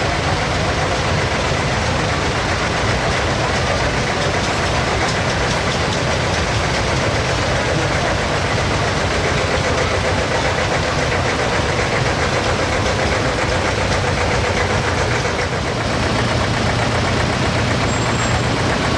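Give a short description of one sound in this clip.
Old tractor engines chug and putter close by as they roll past.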